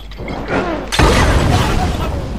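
A bottle bursts into flames with a loud whoosh.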